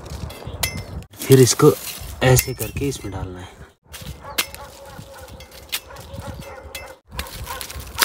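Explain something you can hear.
Leaves rustle as cut plants drop into a woven basket.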